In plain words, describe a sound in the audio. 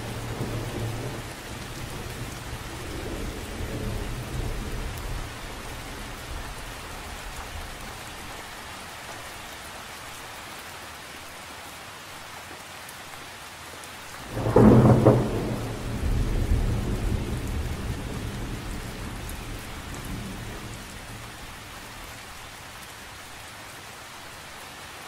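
Rain patters steadily on the surface of a lake outdoors.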